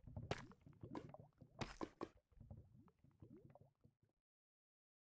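Lava bubbles and pops nearby.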